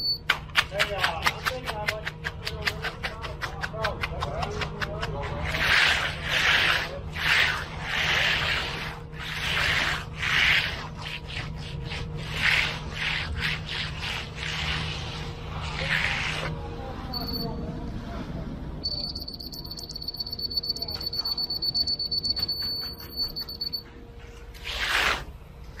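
A trowel scrapes and swishes over wet concrete.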